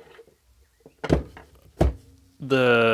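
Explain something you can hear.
Hard knocks sound as a metal device is handled.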